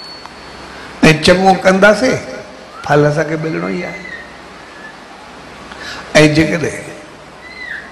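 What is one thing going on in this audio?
A middle-aged man sings into a microphone in short phrases.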